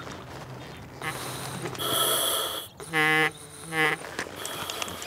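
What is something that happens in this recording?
A diver breathes in and out through a regulator, hissing loudly.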